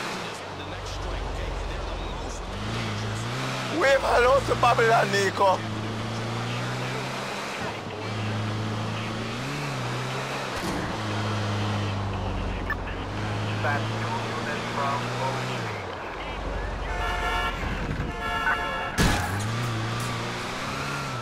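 A van engine hums and revs up and down as it drives.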